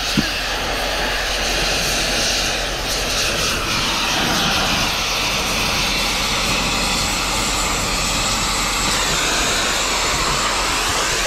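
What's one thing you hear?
A cutting torch roars steadily with a hissing flame.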